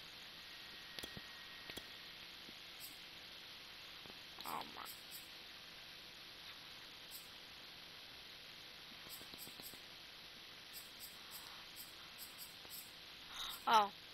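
Soft menu clicks tick as options change.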